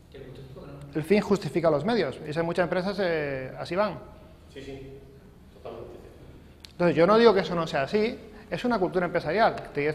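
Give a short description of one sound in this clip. A middle-aged man speaks with animation to a small group.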